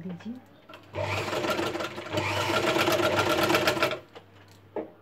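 A sewing machine runs with a fast rattling hum.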